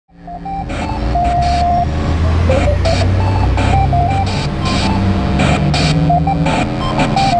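An amplifier plays a deep bass and drum backing.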